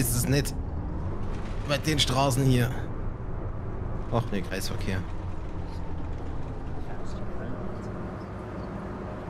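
A bus engine hums steadily at low speed.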